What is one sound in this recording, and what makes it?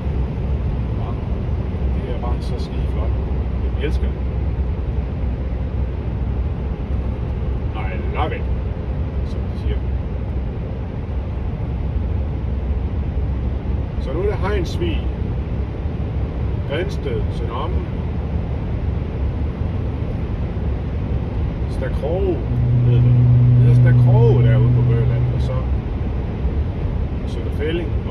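A car engine and tyres rumble steadily on a smooth road.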